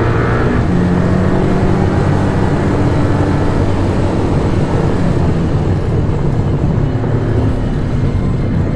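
A sports car engine roars loudly from inside the cabin, its pitch rising and falling with the gears.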